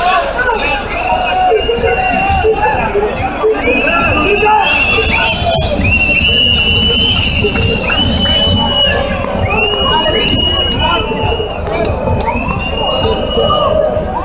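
A large crowd talks and cheers loudly close by.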